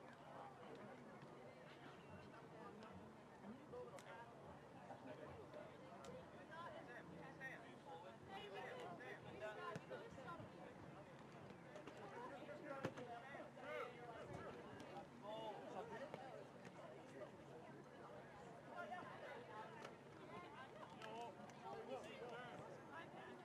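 Young players shout and call to each other outdoors across an open field.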